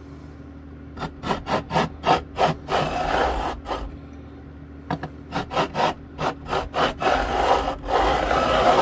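A small tool clicks and taps against guitar frets.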